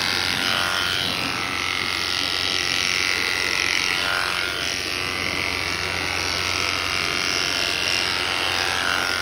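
Electric shears buzz steadily while clipping wool.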